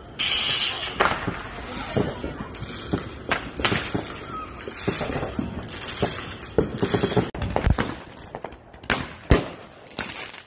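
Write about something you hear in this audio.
A firework fountain hisses and sprays sparks.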